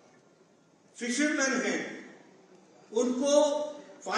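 An elderly man speaks forcefully into a microphone, heard through loudspeakers in a large hall.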